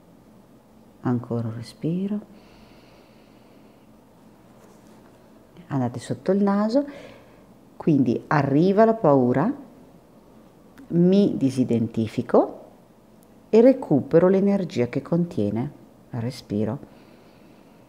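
A woman speaks calmly in short bursts, close to a microphone.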